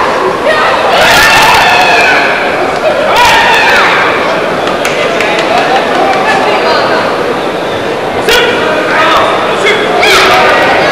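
A man shouts commands loudly as a referee.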